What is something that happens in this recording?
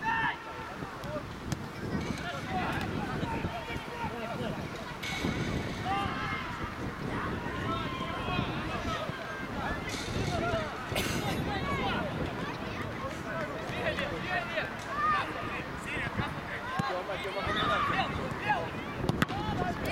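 Children shout and call out outdoors.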